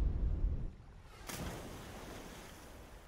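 Water splashes loudly.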